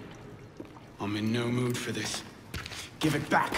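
A young man answers tensely.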